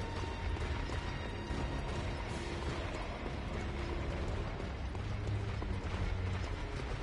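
Footsteps run quickly over a stone floor.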